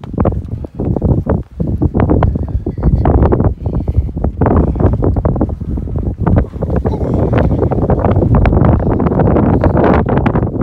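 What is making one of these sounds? Strong gusting wind roars and buffets the microphone outdoors.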